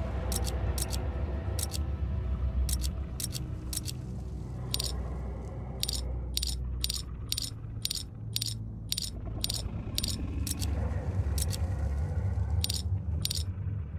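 Small metal pieces click sharply, again and again.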